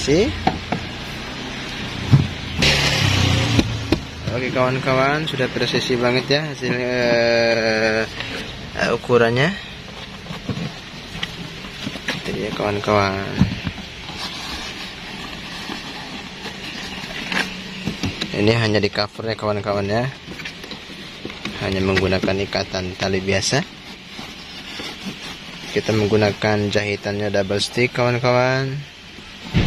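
A leather seat cover rustles and creaks as hands pull and tuck it.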